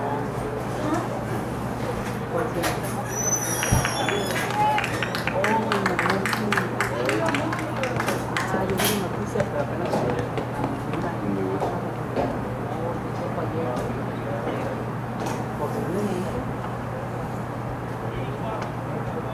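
A crowd of spectators nearby talks and calls out outdoors.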